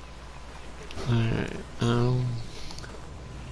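A large creature lets out deep, groaning calls.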